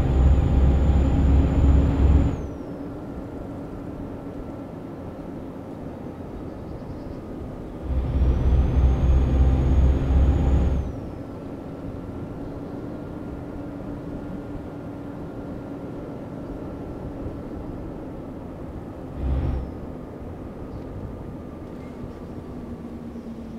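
A truck engine drones steadily while driving.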